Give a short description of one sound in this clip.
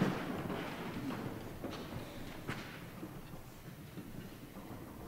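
An orchestra plays a final chord that slowly fades away in a large echoing hall.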